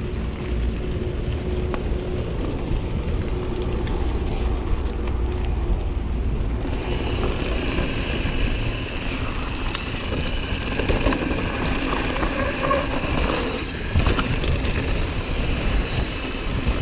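Bicycle tyres crunch and rattle over loose gravel.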